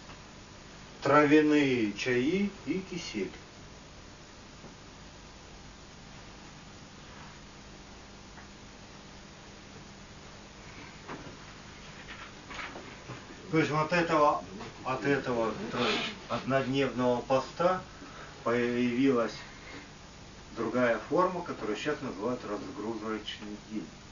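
A man reads aloud and speaks calmly.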